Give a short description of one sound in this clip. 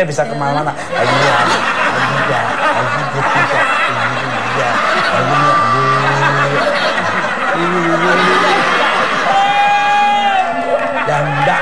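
A middle-aged man shouts and sings loudly with animation.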